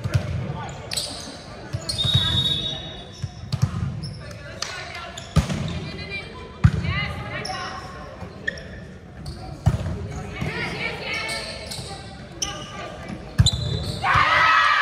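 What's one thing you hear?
Shoes squeak sharply on a wooden court.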